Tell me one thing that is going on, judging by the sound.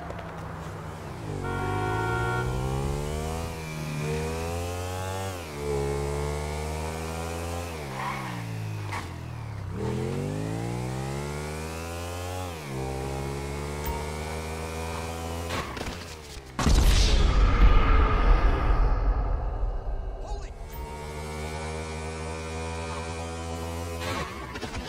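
A motorcycle engine revs and shifts up through the gears.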